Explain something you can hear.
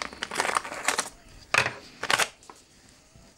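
Scissors snip through wrapping paper.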